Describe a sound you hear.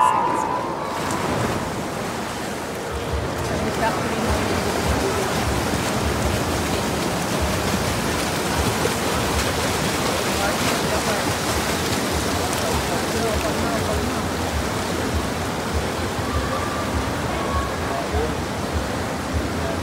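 Swimmers splash and churn the water.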